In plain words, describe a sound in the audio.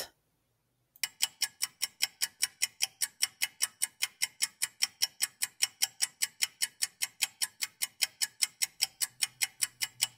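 A clock ticks steadily and quickly.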